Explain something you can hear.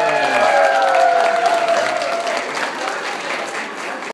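An audience claps hands.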